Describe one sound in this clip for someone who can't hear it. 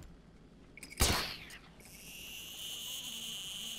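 A grappling line fires with a sharp whoosh.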